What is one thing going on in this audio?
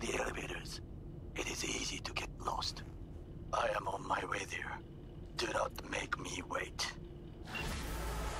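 A man speaks calmly over a phone call.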